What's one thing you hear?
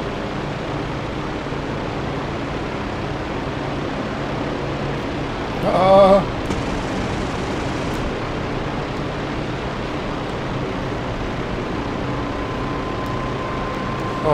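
A propeller plane's engine roars steadily up close.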